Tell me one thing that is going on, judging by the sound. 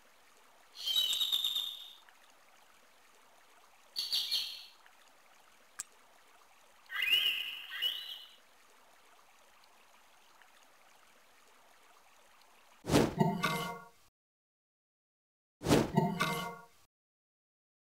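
A short bright electronic chime sounds several times.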